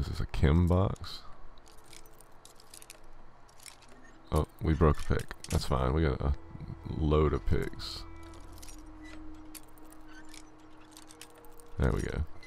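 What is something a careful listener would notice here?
A metal pin scrapes and clicks inside a lock.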